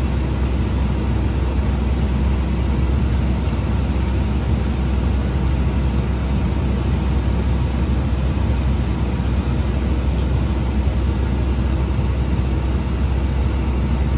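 Tyres roll on the road with a steady hum.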